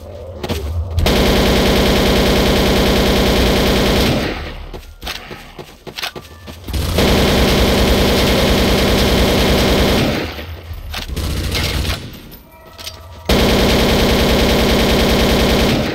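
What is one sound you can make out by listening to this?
A rifle fires in long rapid bursts.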